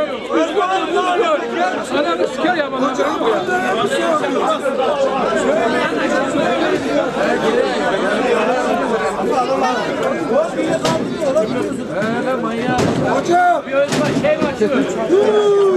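Several men argue and shout with agitation close by, outdoors.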